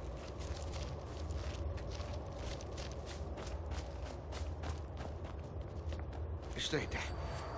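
Footsteps tread steadily on a hard stone floor.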